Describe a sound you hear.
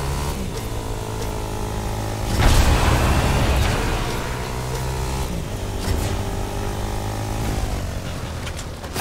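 A quad bike engine hums and revs.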